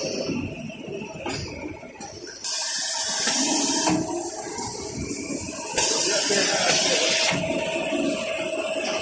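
Factory machinery runs with a steady mechanical whirring.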